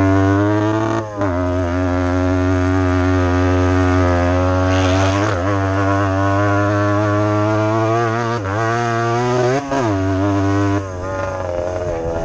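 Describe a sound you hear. A dirt bike engine revs loudly up close, rising and falling as the rider shifts gears.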